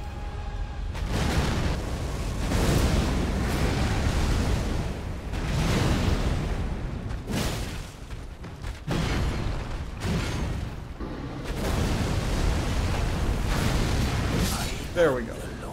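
Fire bursts and roars in loud blasts.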